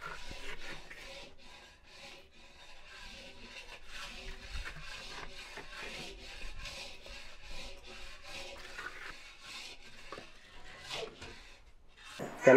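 A spoon scrapes against a metal pot.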